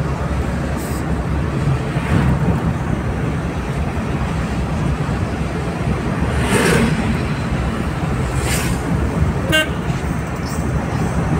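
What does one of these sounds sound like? Tyres roll over a paved road.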